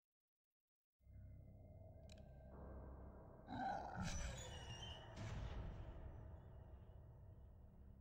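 Low, rumbling eerie music plays with rushing whooshes.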